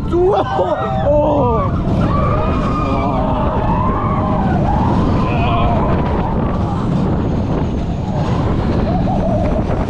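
Wind roars loudly past a close microphone.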